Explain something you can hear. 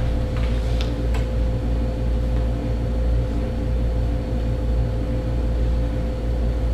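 A man speaks calmly across a table.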